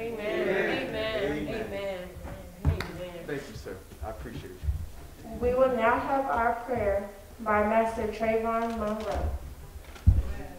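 A man speaks through a microphone in an echoing room.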